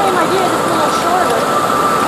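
Water rushes and cascades down rocks.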